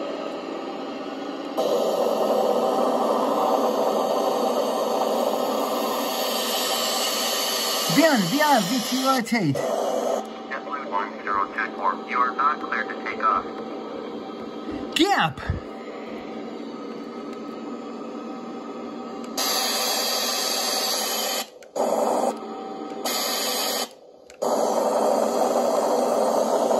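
Jet engines roar steadily through a loudspeaker.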